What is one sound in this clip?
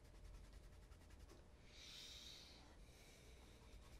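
A shoe is rubbed with a cloth.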